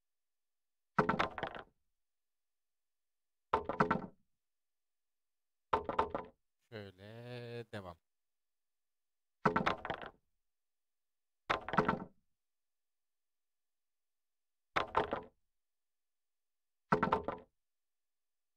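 A hammer knocks on wood in short bursts.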